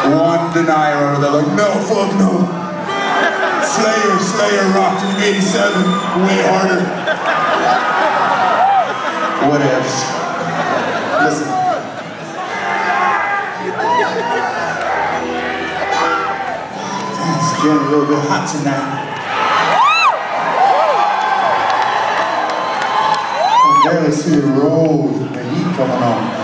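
A band plays electric guitars loudly.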